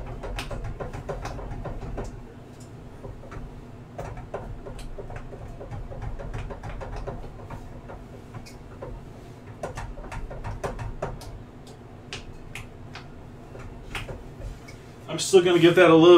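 A spoon scrapes and clicks against a pan as a thick sauce is stirred.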